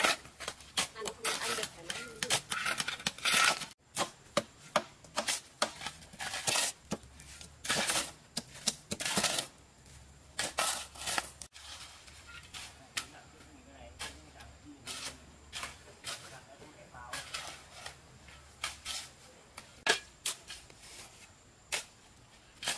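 A shovel scrapes and crunches into gravel.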